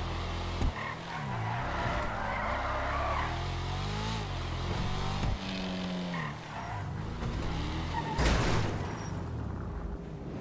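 A sports car engine revs and hums as the car drives.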